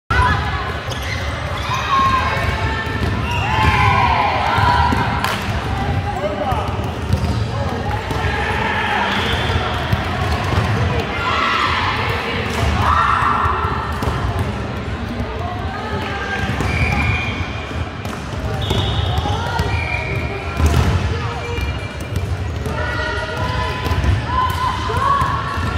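Young women call out to each other across an echoing indoor hall.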